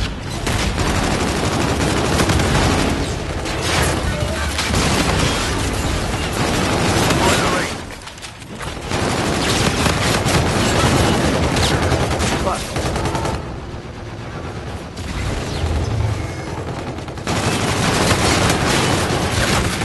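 Automatic gunfire rattles in quick bursts.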